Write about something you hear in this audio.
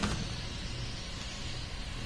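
A metal locker door creaks open.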